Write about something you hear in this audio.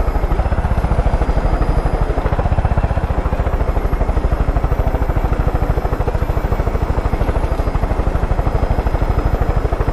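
A helicopter engine whines steadily.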